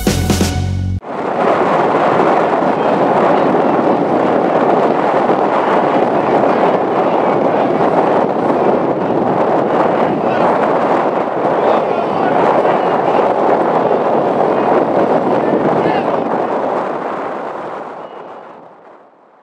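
A crowd of men shouts and chatters outdoors.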